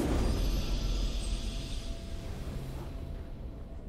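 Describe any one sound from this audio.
A triumphant game victory fanfare rings out and fades away.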